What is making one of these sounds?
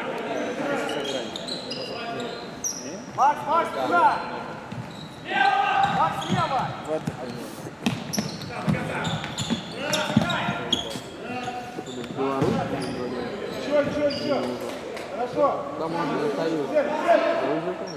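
Men shout to each other across an echoing indoor hall.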